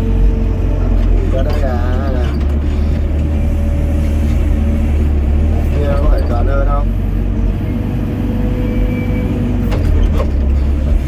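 An excavator bucket scrapes and knocks against soil.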